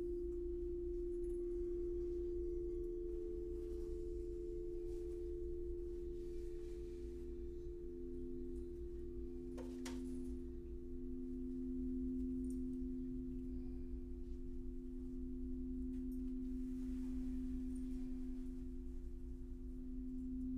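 Crystal singing bowls hum with steady, overlapping ringing tones.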